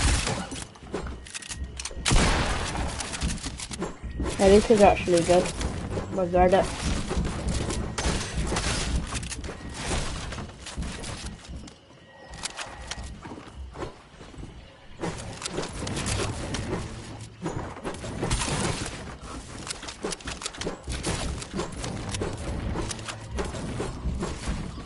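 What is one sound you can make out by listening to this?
A pickaxe chops repeatedly into wooden walls.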